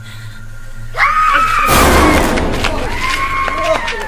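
A young man screams loudly in fright nearby.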